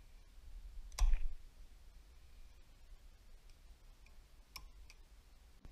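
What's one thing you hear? Metal tools click and clink against a small metal part.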